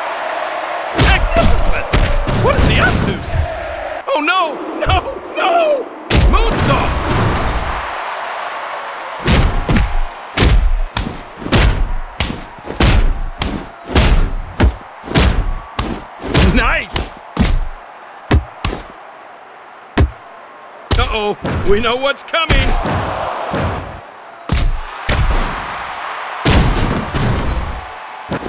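Heavy thuds and slams of wrestlers' bodies hitting each other and the mat.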